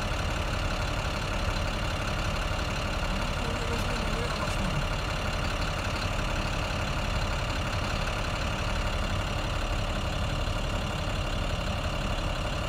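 Traffic rumbles steadily in the background.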